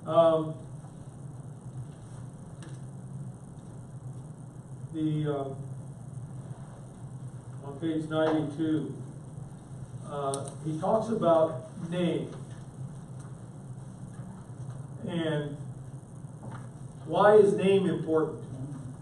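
An older man reads aloud calmly, pausing between phrases.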